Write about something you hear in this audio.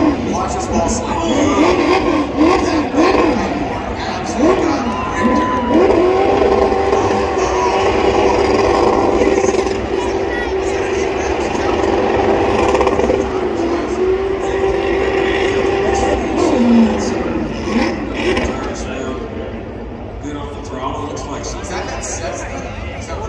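A race car engine revs hard and roars in bursts from a distance.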